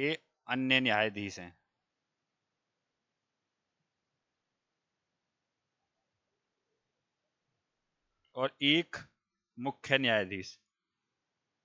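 A man speaks calmly into a close headset microphone, in short bursts.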